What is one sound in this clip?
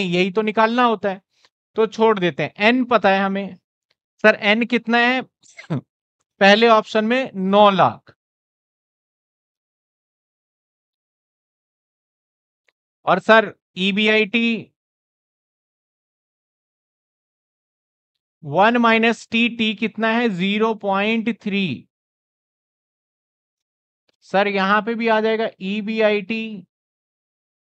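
A man speaks calmly through a clip-on microphone, explaining in bursts with pauses.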